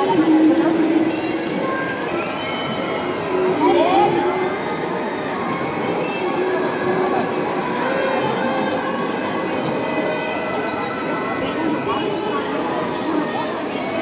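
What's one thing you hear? A large crowd chatters and murmurs steadily outdoors.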